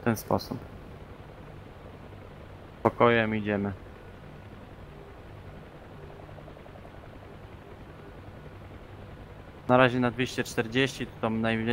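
A helicopter's engine and rotor drone steadily.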